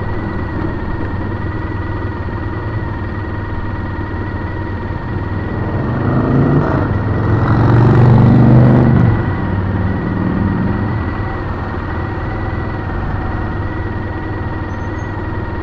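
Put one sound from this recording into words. Car engines idle nearby in stopped traffic.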